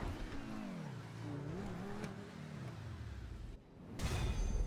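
A sports car engine hums and winds down as the car slows to a stop.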